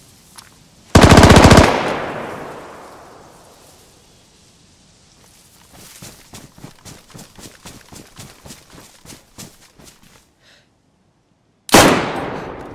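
A rifle fires with a loud crack that echoes away.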